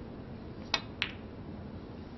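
Snooker balls click together.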